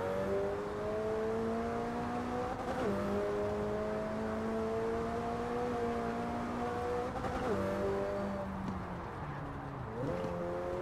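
A sports car engine roars at high revs, rising in pitch and dropping briefly at each gear change.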